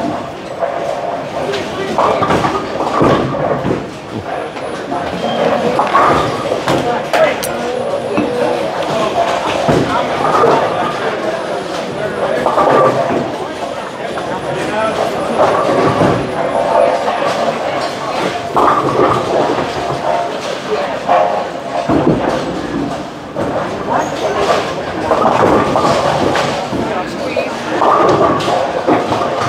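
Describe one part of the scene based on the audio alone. Voices of several adults chatter in a large, echoing hall.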